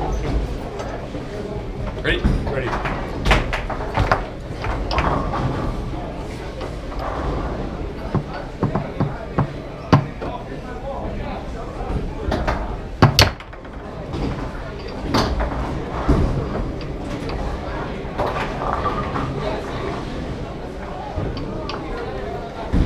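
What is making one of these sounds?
A ball clacks and bangs against the rods and walls of a foosball table.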